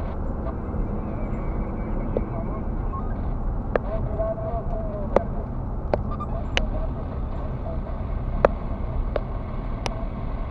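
A car's engine and tyres rumble steadily on the road from inside the car.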